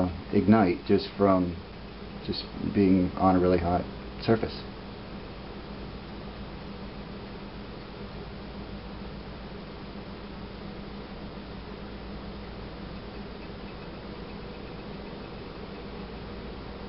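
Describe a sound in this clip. A kettle hums and hisses softly as the water inside heats.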